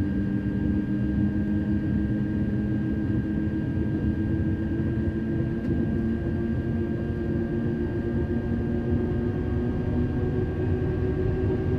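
Train wheels rumble on the rails.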